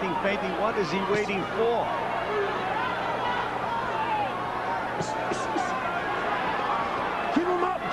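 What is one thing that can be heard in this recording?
Punches thud against a boxer's body.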